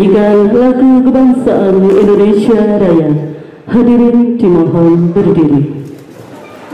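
A woman sings through a microphone and loudspeaker.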